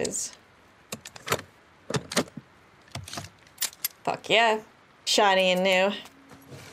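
A gun clicks and clacks as it is handled.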